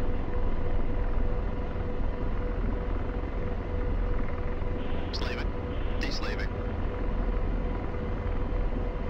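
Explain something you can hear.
A helicopter's engine and rotor drone steadily from inside the cockpit.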